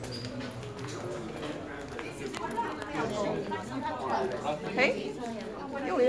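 Several people talk indoors in the background.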